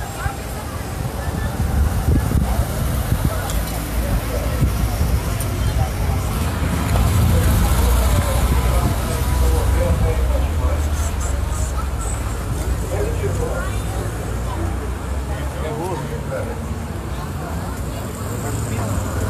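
An ambulance engine idles nearby with a low rumble.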